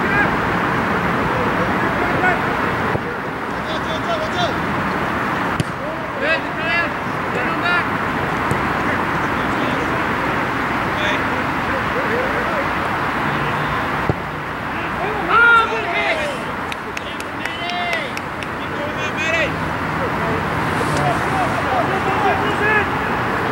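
Men shout and call to each other across an open outdoor pitch.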